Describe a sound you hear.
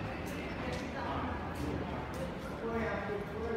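Voices murmur faintly in a large indoor space.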